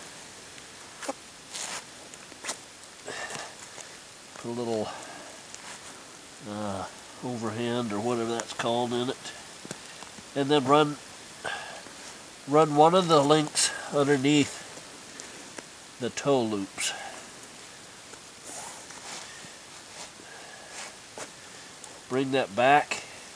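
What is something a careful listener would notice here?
A bootlace rustles and scrapes as it is pulled through a boot's hooks.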